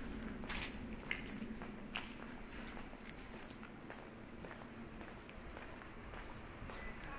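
Footsteps tap on a paved street at a steady walking pace.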